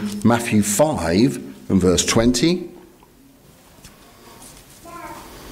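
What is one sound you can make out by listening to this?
A middle-aged man reads aloud calmly into a microphone.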